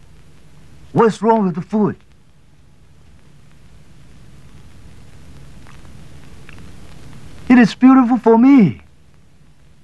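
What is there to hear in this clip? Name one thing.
A young man laughs loudly and talks with animation.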